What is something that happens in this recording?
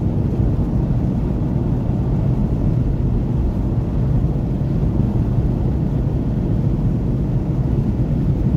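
A car cruises on a motorway at speed, heard from inside as a steady low rumble.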